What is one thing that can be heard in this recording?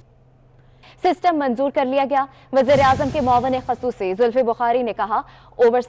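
A young woman reads out news calmly through a microphone.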